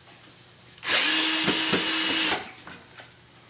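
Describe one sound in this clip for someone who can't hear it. A power drill whirs loudly for a moment.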